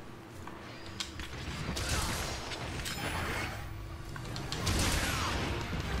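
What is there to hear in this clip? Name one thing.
Game battle noises crash and rumble.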